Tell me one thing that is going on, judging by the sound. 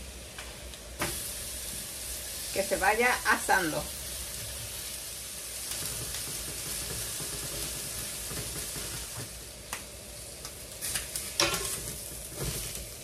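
Mashed beans sizzle on a hot griddle.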